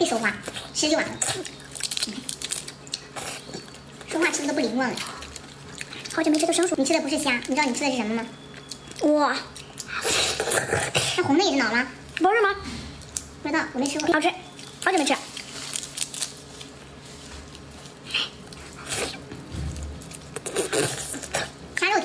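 A young woman chews and slurps wetly.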